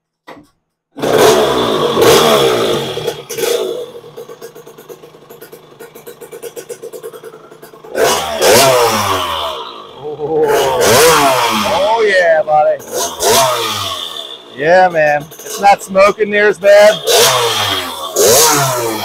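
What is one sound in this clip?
A small motorbike engine sputters to life and idles.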